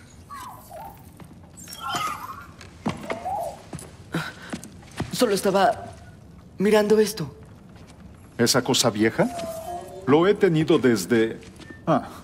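A young man speaks into a microphone.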